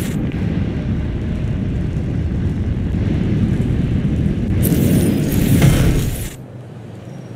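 Jet thrusters roar loudly and steadily, then cut out.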